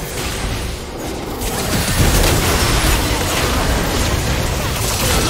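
Magic spells crackle and burst in a busy video game battle.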